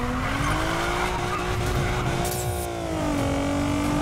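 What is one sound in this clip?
Tyres screech as a car drifts through a bend.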